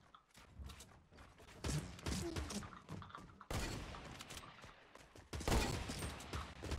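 Game building pieces snap into place with quick, sharp clacks.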